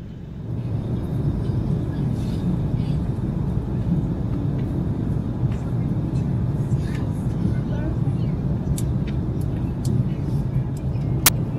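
Magazine pages rustle as they are flipped quickly.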